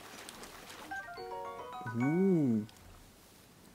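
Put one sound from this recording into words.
A short rising chime jingle plays, followed by a low swooping tone.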